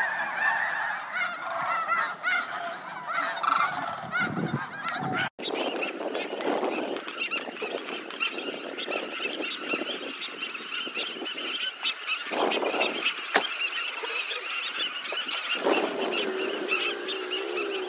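Geese honk and call while feeding on the ground nearby.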